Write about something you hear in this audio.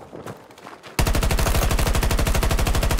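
A rifle fires in a rapid, steady burst of shots.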